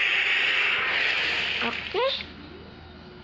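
Game battle effects clash and burst loudly.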